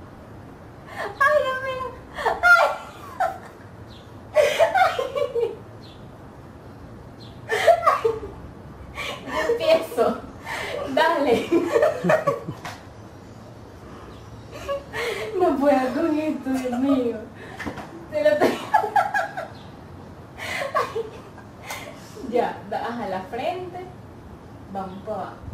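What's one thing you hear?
Two young women laugh and giggle close by.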